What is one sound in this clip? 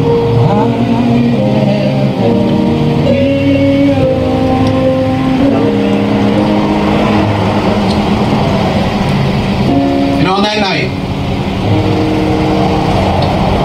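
A group of men sing together outdoors.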